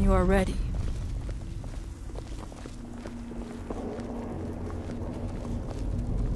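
Footsteps fall on stone.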